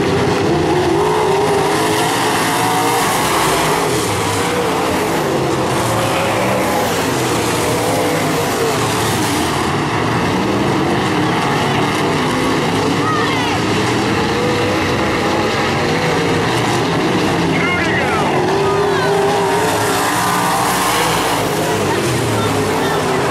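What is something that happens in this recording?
Race car engines roar loudly as the cars speed around a dirt track.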